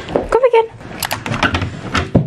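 A door latch clicks open.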